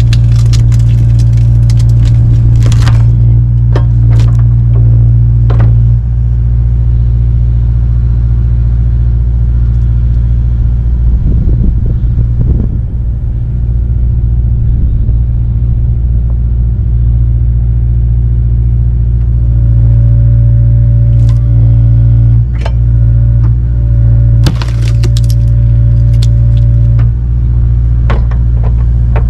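An excavator's diesel engine hums steadily close by.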